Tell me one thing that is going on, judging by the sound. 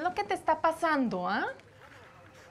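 A woman speaks up sharply and with urgency, close by.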